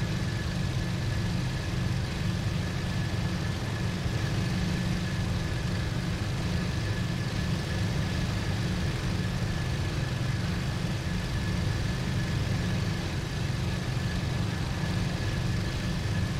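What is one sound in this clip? A propeller aircraft engine drones steadily with a loud low rumble.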